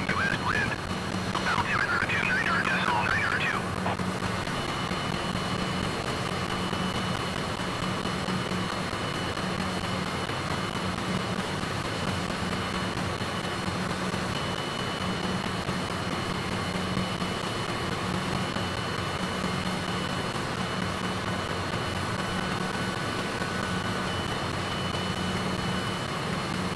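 A jet engine hums steadily in flight.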